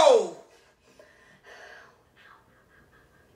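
A young woman whimpers softly in pain.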